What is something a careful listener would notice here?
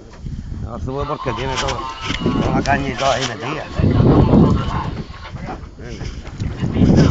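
A man talks excitedly close by, outdoors.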